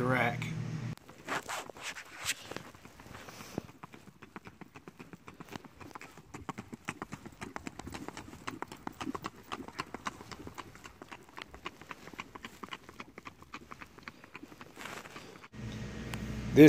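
A horse's hooves clop quickly on a paved road.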